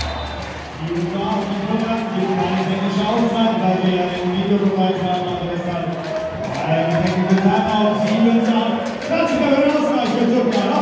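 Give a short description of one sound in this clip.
A large crowd sings and chants loudly in an echoing hall.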